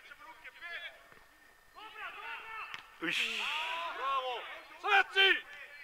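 Men shout to each other across an open field, heard from a distance outdoors.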